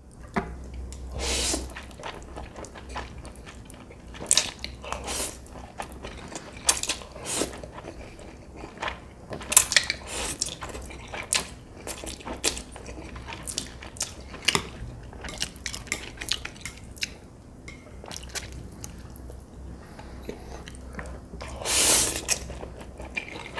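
A man slurps noodles loudly, close to the microphone.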